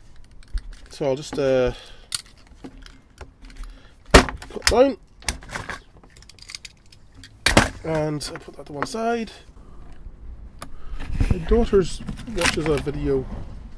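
Small plastic parts click and knock against a wooden tabletop.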